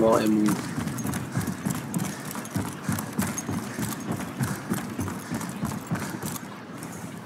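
Footsteps thud on wooden stairs.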